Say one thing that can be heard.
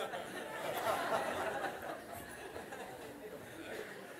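An elderly man laughs heartily.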